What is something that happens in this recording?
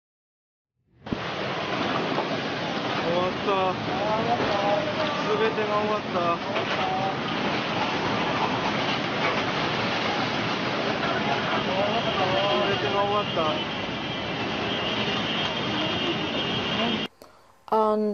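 Floodwater surges and roars.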